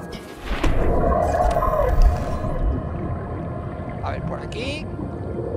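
A low underwater rumble drones steadily.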